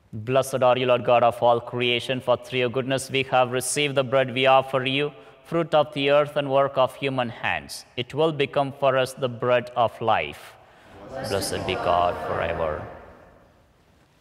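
A man chants in a steady sung voice, echoing in a large hall.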